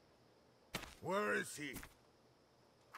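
A man speaks in a low voice close by.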